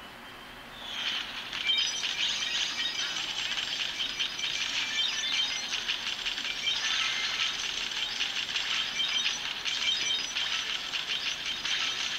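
Rapid electronic game shooting effects play from a small phone speaker.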